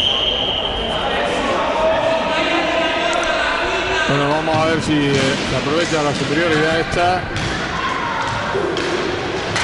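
Roller skates rumble and scrape across a wooden floor.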